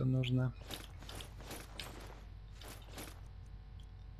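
Soft game menu clicks sound as items are scrolled through.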